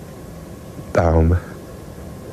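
A man speaks briefly, heard close through a microphone.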